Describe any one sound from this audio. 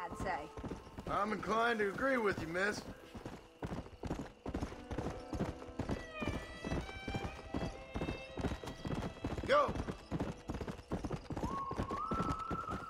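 A horse's hooves clop steadily on a dirt trail.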